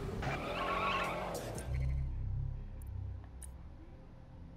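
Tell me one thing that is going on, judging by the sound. A car engine rumbles low.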